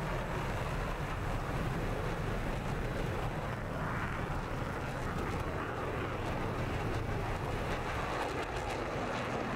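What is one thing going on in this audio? A jet engine roars steadily as a fighter plane flies.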